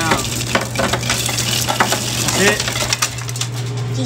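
Ice cubes clatter into a metal bucket.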